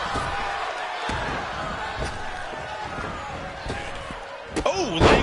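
A large crowd cheers steadily in an arena.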